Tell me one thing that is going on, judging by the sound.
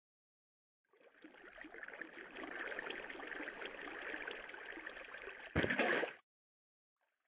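Water splashes and flows.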